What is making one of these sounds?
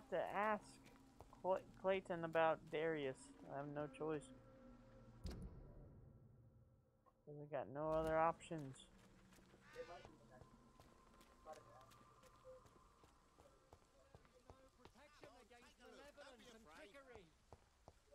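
Footsteps run over stone paving.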